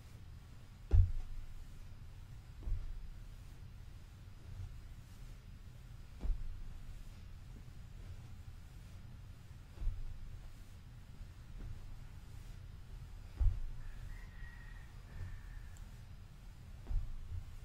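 A leg thumps softly down onto a mattress now and then.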